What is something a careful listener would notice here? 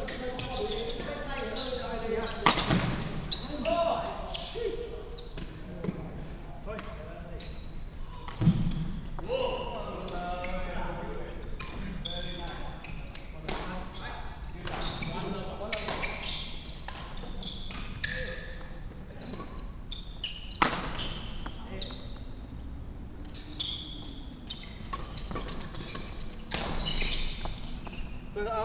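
Shuttlecocks are struck with sharp racket smacks in a large echoing hall.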